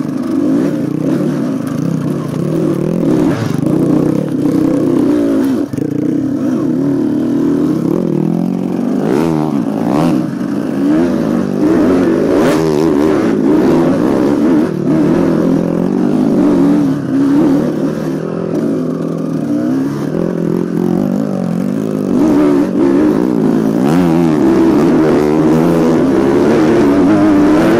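A dirt bike engine revs and putters up close, rising and falling in pitch.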